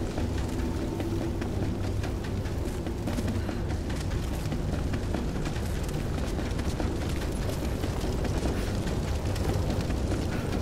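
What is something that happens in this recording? Footsteps scuff over stone.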